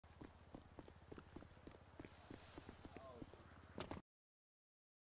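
Footsteps patter quickly on a wooden deck.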